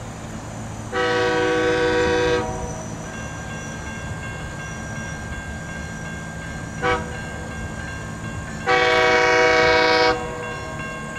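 A train horn blows loud, long blasts.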